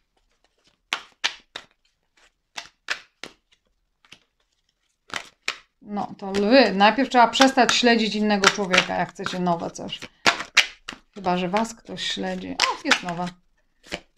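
Cards shuffle and flick with crisp rustling.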